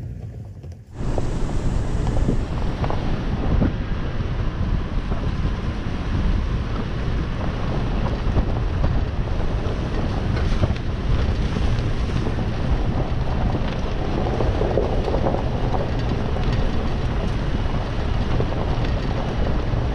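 The body of a vehicle rattles and knocks over bumps.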